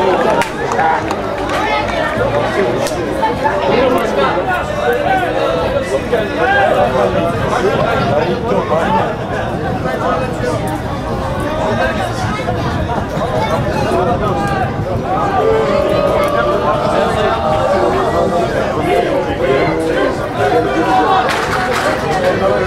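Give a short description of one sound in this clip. A crowd of men chatters and calls out close by, outdoors.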